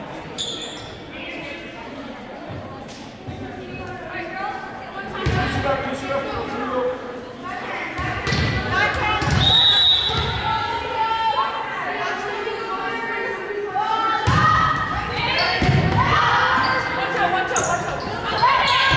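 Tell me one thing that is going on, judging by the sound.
Young women call out to each other with energy in a large echoing gym.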